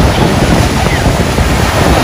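Water splashes as a man and a small child jump in the shallows.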